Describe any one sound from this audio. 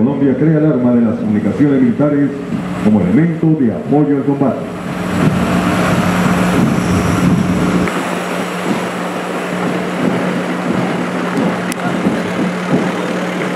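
Heavy truck engines rumble as they roll slowly past.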